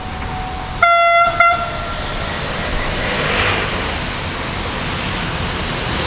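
A train approaches slowly from a distance with a low rumble.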